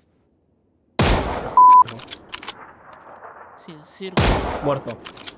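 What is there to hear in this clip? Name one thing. A rifle fires loud shots that ring out and echo.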